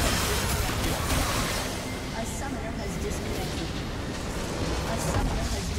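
Magic spells crackle and burst in a hectic fight.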